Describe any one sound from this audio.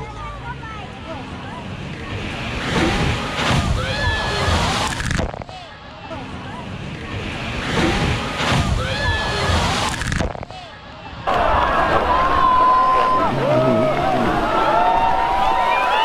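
A truck engine roars as it churns through deep mud.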